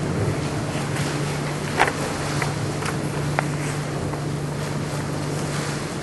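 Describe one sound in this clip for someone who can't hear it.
Paper pages rustle as a page is turned.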